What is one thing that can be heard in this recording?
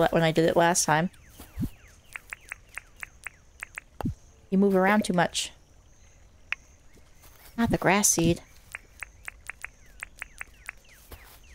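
Soft footsteps patter on grass.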